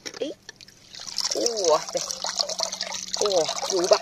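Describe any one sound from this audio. Water splashes and pours from a rock pool.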